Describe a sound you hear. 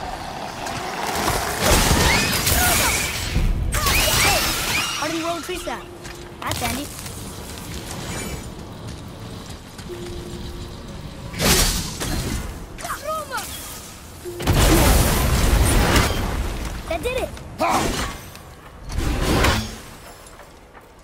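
A heavy axe whooshes through the air and strikes with an icy crack.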